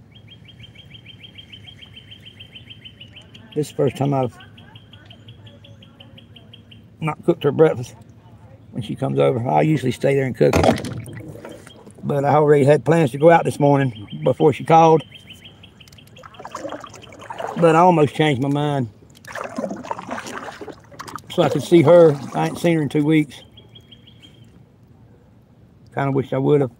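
Water laps softly against the hull of a small boat.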